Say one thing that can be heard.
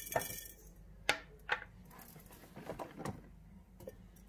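Olives rattle and roll as a hand stirs through them.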